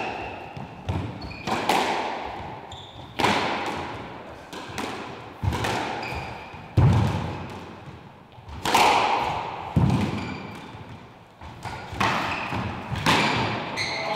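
A squash ball smacks hard against the walls, echoing in a hard-walled court.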